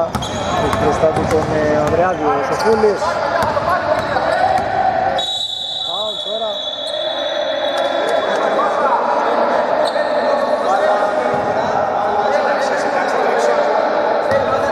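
Men shout and call out across a large echoing hall.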